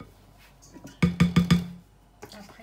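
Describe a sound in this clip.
A metal bowl knocks and clinks against the rim of another bowl.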